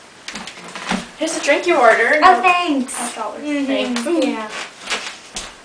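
A young woman talks loudly nearby.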